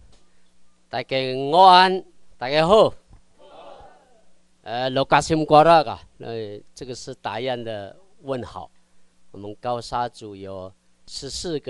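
A man speaks steadily through a microphone in a large room.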